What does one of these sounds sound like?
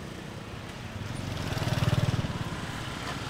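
Motorbikes rumble past on a street.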